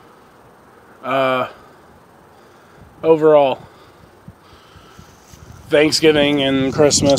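A young man speaks close to the microphone in short bursts.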